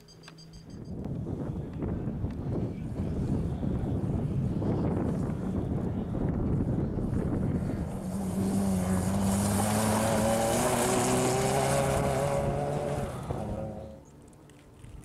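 A rally car engine roars and revs hard as it races close by.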